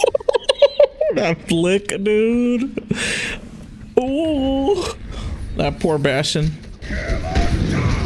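A young man laughs through a headset microphone.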